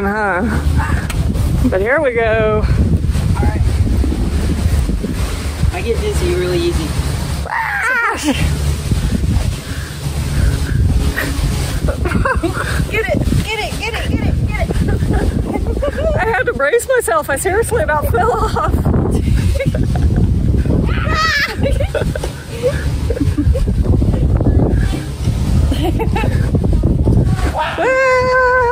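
A woman talks excitedly close to a microphone.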